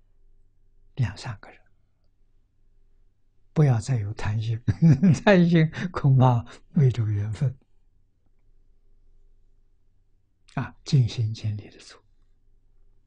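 An elderly man speaks calmly and warmly into a close microphone, with pauses.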